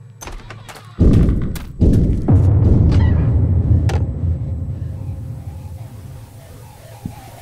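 A loud, deep rumble bursts in and slowly fades.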